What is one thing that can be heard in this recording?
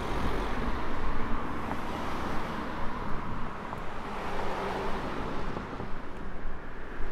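A car drives along a nearby road.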